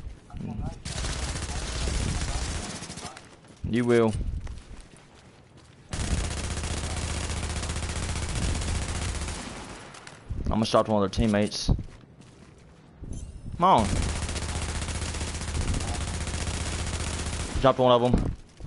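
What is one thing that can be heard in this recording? A rifle fires in long rapid bursts.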